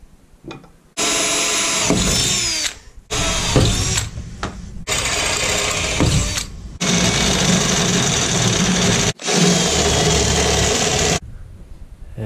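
A power drill whirs in short bursts, biting into metal.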